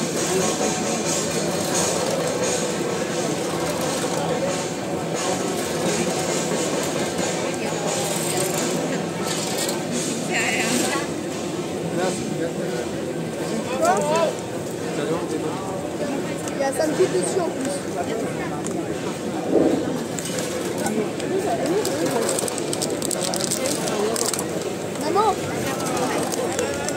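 A large crowd of men and women murmurs and talks all around, outdoors.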